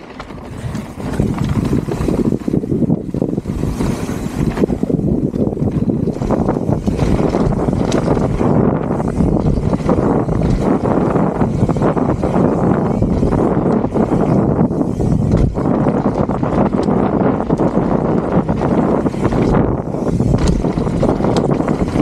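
A bicycle rattles as it bounces over bumps.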